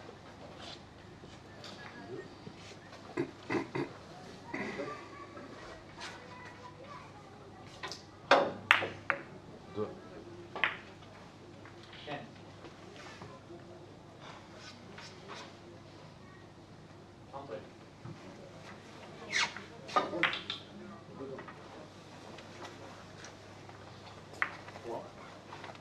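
Billiard balls click sharply against each other several times.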